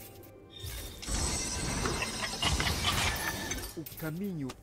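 Video game combat effects clash and zap.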